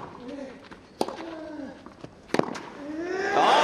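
A tennis ball is struck hard with a racket, with sharp pops.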